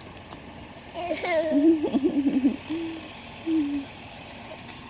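A toddler babbles and squeals loudly close by.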